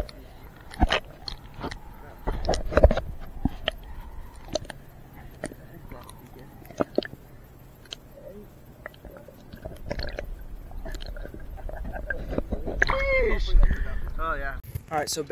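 Water bubbles and splashes close by, muffled as if underwater.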